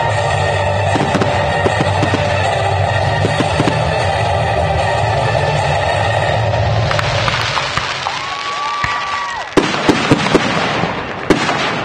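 Fireworks pop and crackle in the sky.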